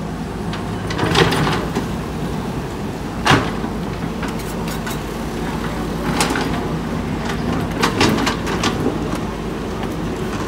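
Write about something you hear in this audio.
An excavator bucket scrapes and knocks against dirt and stones.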